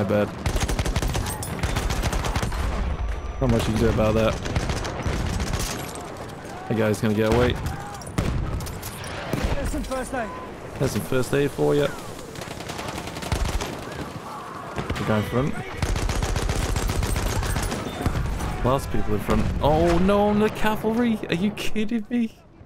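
A machine gun fires rapid, loud bursts.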